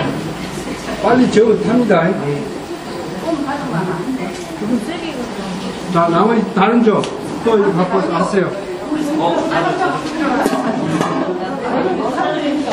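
Several men and women chat nearby.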